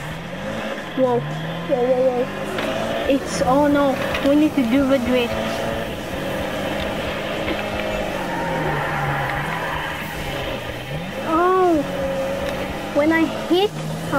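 Car tyres squeal while drifting on a wet road.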